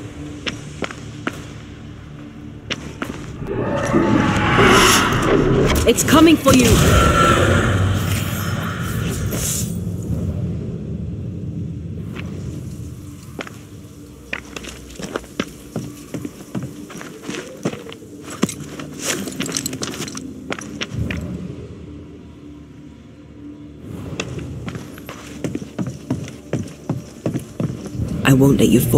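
Footsteps crunch on rough ground and wooden planks.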